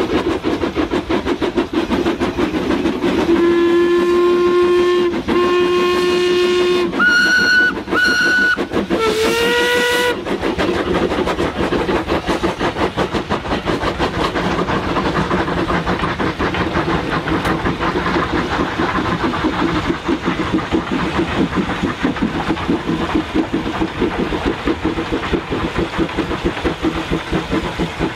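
Steam locomotives chuff hard and fast.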